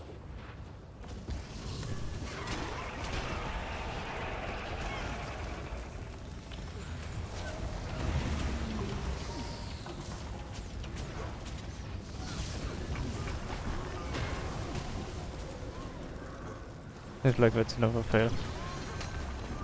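Magic blasts and clashing effects sound through a busy fight.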